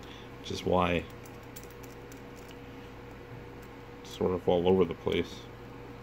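A small metal mechanism clicks and rattles as it is twisted open.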